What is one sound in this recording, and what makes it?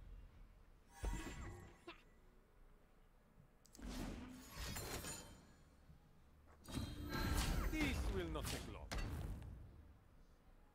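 Game chimes and card effects sound in short bursts.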